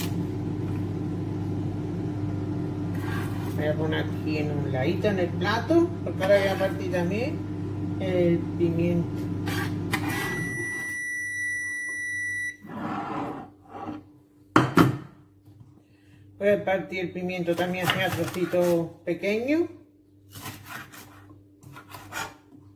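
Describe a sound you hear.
A chef's knife chops on a plastic cutting board.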